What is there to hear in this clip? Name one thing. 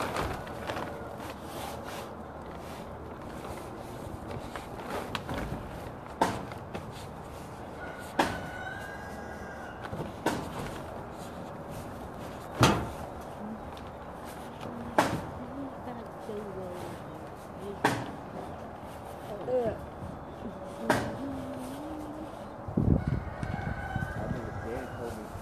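Plastic sheeting rustles and crinkles as a child moves on it.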